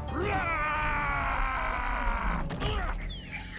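A monster lets out a loud, wavering roar.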